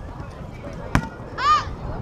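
A foot kicks a ball with a sharp thump.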